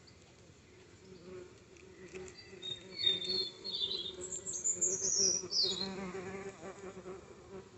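A bee buzzes loudly close by.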